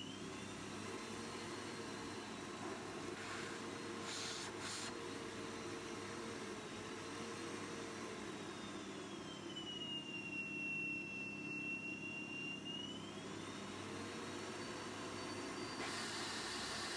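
A bagless cyclonic vacuum cleaner motor runs with a high whine that drifts in pitch.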